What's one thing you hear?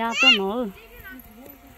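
A child calls out nearby in a sing-song voice.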